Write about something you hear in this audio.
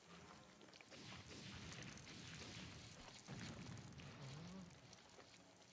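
Objects burst apart with a muffled crackling explosion.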